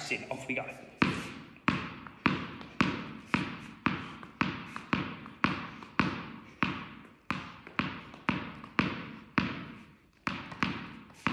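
A tennis ball bounces steadily on a hard floor.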